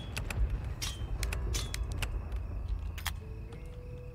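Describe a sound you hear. A heavy lock snaps open with a metallic clunk.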